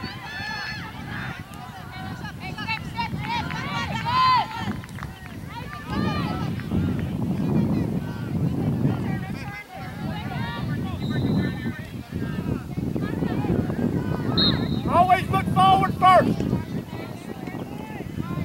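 A crowd of spectators and players shout and call out across an open field.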